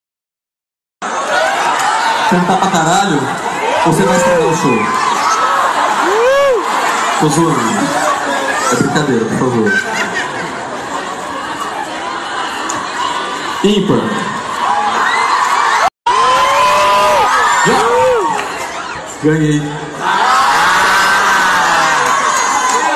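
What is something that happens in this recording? A large crowd screams and cheers loudly close by.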